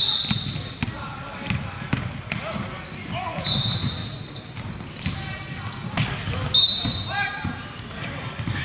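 Players call out to each other across an echoing gym.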